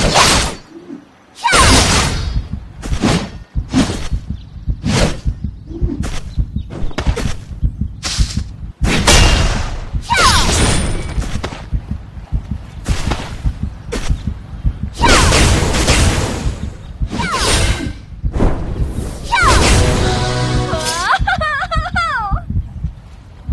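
Swords swish and clang in quick, repeated strikes.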